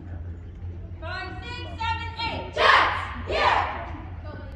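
A group of girls shouts a cheer together in a large echoing hall.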